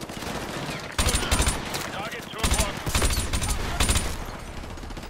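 Gunshots crack loudly in quick bursts.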